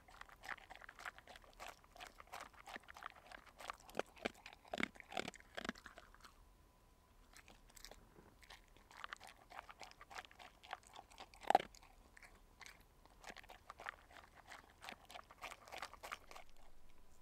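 A dog crunches dry kibble and licks at a bowl, close by.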